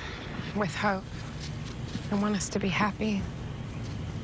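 A young woman speaks quietly and calmly nearby.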